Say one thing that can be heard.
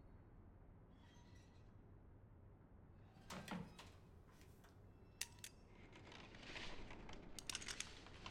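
A combination lock's dial clicks as it turns.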